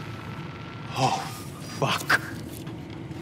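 A man exclaims briefly, close by.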